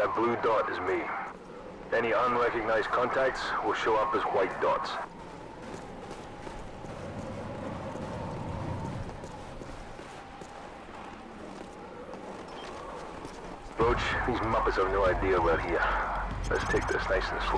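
Wind blows steadily across open snow.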